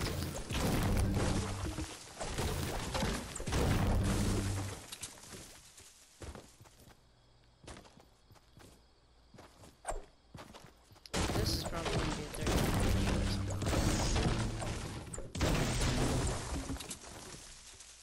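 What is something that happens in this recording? A pickaxe chops repeatedly into wood.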